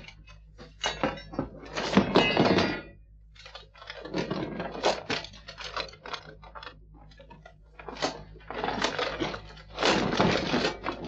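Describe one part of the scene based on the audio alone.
Metal armour clanks and scrapes as fighters struggle close by.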